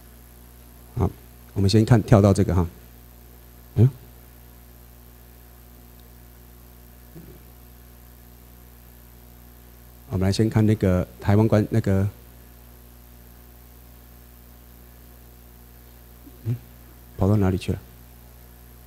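A man speaks into a microphone over a loudspeaker in short bursts with pauses in between.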